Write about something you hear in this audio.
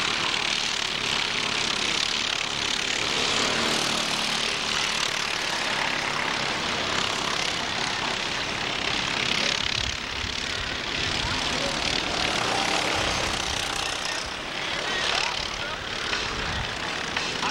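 Kart engines whine and buzz as the karts race around a track outdoors.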